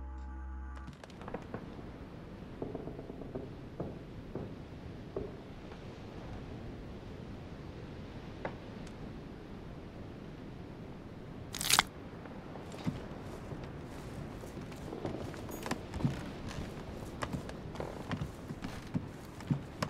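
Footsteps tap on a wooden floor indoors.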